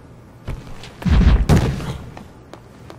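A cardboard box thumps down onto a hard floor.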